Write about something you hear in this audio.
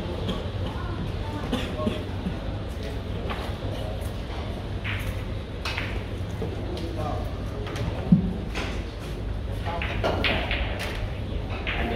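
Men talk quietly in the background of a room.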